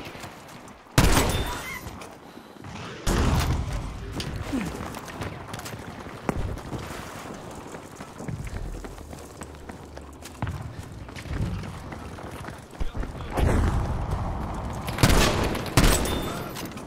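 Shotgun blasts boom loudly.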